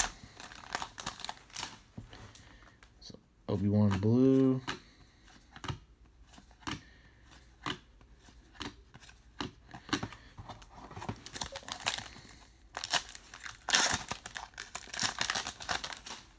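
A foil wrapper crinkles and rustles.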